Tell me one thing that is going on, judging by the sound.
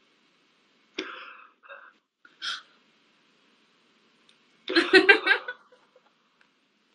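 A young woman talks and laughs over an online call.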